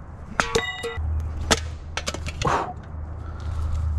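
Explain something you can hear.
A metal can clatters to the ground.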